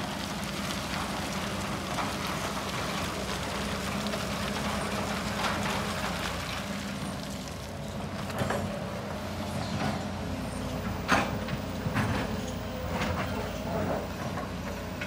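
Rocks clatter and thud as they drop into a truck bed.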